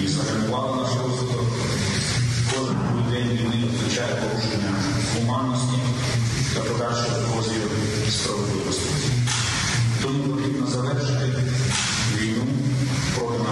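A man speaks calmly and steadily into a microphone.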